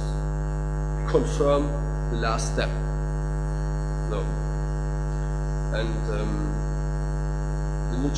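A young man speaks into a microphone through a loudspeaker, in short bursts with pauses.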